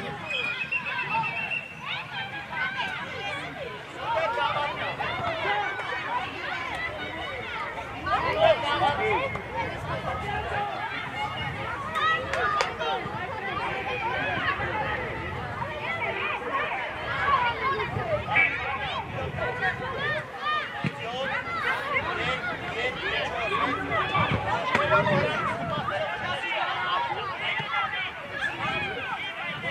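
Children shout and call out across an open outdoor pitch.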